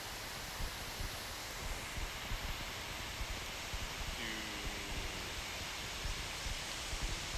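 A river rushes over rocks in the distance.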